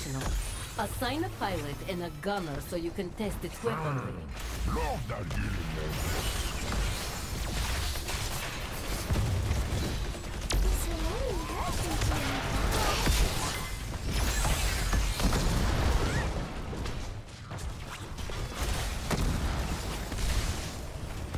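Weapons fire and energy blasts crackle in a busy battle.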